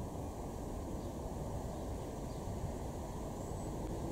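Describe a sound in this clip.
A small bird chirps faintly nearby.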